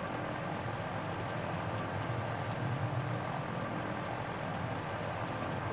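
Propeller fans whir steadily.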